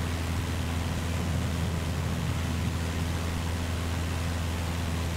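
A small propeller plane's engine drones steadily in the cabin.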